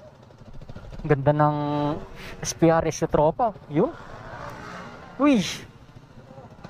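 A scooter engine revs loudly as it passes close by.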